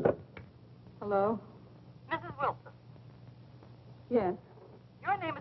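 A woman speaks anxiously into a telephone, in short broken phrases.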